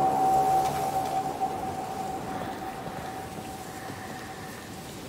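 Footsteps crunch softly on dirt and gravel.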